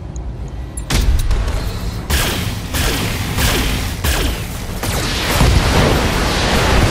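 A laser beam fires with a loud crackling hum.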